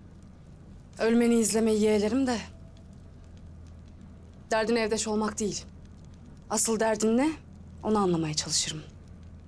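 A young woman speaks calmly in short phrases nearby.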